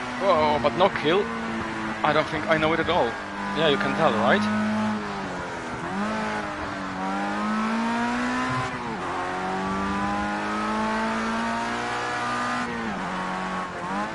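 A racing car engine roars, its pitch climbing and dropping with each gear change.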